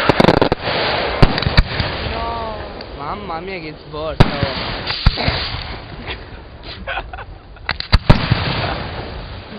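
Firework sparks crackle and sizzle.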